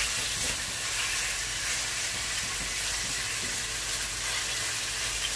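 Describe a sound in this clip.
A wooden spoon scrapes and stirs against a metal pan.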